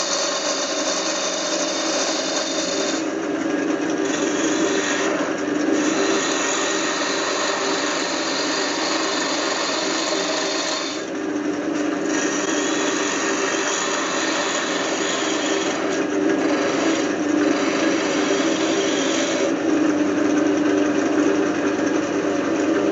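A wood lathe motor hums steadily.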